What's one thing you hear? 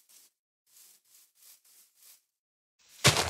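Footsteps pad softly over grass.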